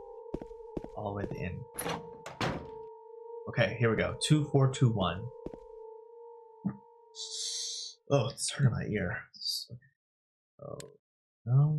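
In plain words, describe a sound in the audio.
A young man talks animatedly into a headset microphone nearby.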